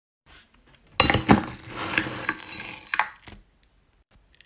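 Small beads rattle and clink as a stick stirs them in a glass.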